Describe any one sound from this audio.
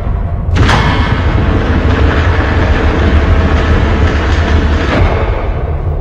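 A heavy metal door slides open with a rushing hiss.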